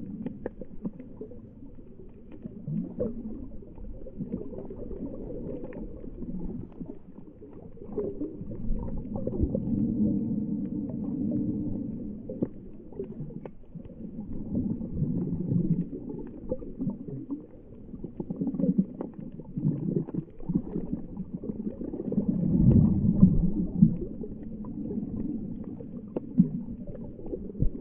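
Water swirls and crackles softly, heard muffled from underwater.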